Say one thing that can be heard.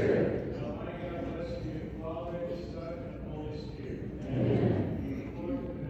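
A congregation of men and women sings together in a reverberant hall.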